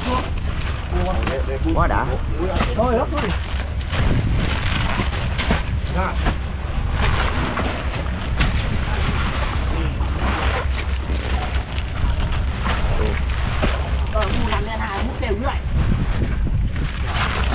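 Plastic bags rustle and crinkle as they are handled.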